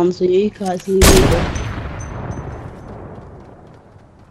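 A gun fires once with a sharp bang and a long fading echo.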